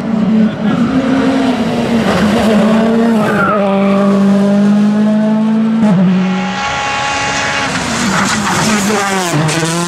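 A rally car engine roars loudly as the car speeds past, revving up and down.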